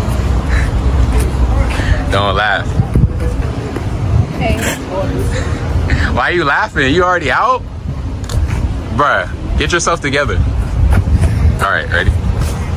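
A young woman giggles softly, close by.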